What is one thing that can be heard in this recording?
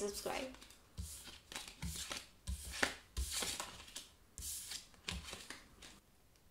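Playing cards slide and rustle as they are swept off a table.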